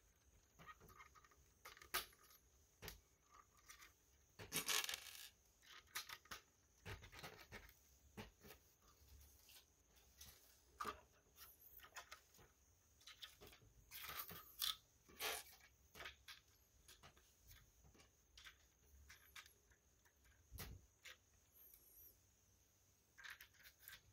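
Plastic toy bricks click and clatter as hands handle them.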